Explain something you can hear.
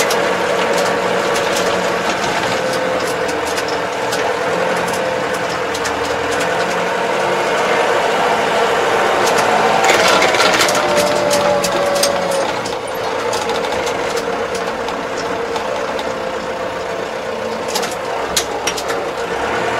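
Tyres crunch over a rough track.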